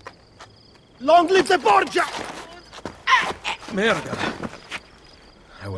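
A man shouts hoarsely and with strain, close by.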